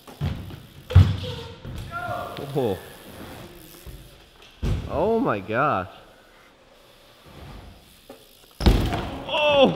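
Bike tyres thud as they land on a hard ramp.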